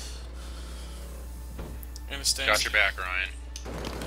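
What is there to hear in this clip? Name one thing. A spray can hisses.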